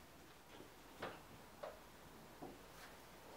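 A car's bonnet latch clicks.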